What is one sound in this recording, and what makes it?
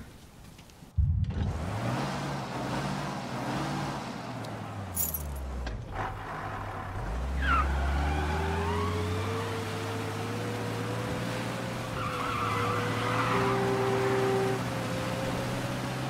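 A car engine idles and then revs as the car drives off.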